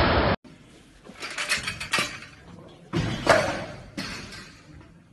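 Weight plates clank on a heavy barbell.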